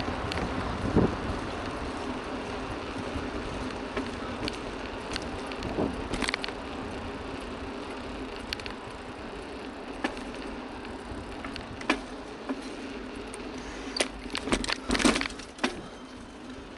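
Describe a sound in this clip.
A bike rattles and knocks over bumps in the road.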